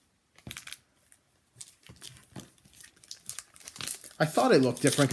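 Trading cards rustle and slap as they are sorted by hand.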